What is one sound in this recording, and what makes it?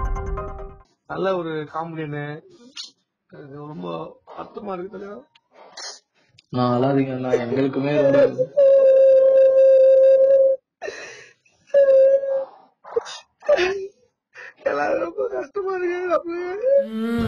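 A young man talks over a phone line.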